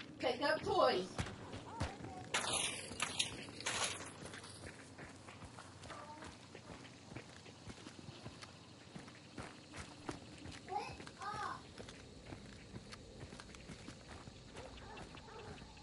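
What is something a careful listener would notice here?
Footsteps tread over dirt and grass.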